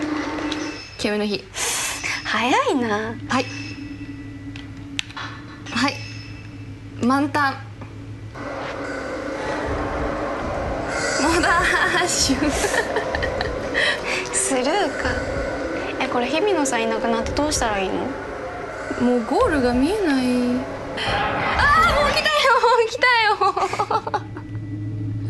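Two young women chat with animation close by.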